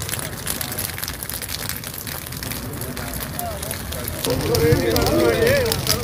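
Flames crackle and pop in dry grass.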